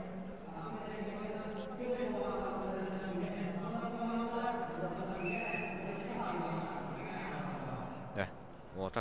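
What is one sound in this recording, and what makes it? Several men chat and murmur in a large echoing hall.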